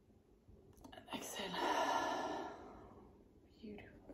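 A woman exhales deeply and slowly, close by.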